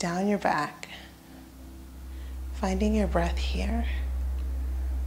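A woman speaks softly and calmly nearby.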